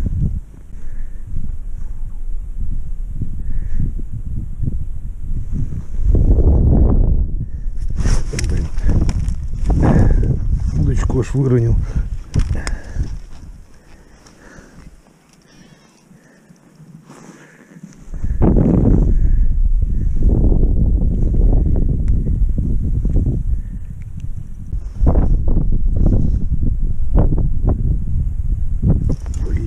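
Wind blows across open ice outdoors.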